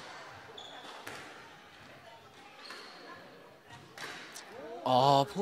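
A squash ball smacks off rackets and walls in a hall with some echo.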